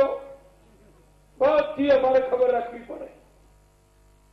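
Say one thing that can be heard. A man speaks into a microphone in a formal, declaiming tone.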